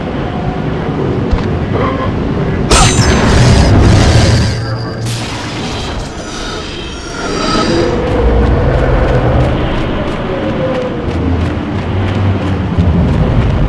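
A sandstorm wind roars steadily.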